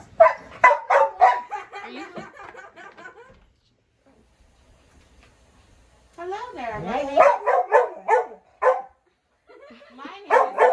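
Young women talk with animation close by.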